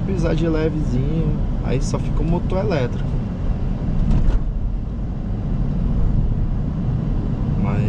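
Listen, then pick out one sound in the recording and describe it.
Road noise rumbles steadily inside a moving car.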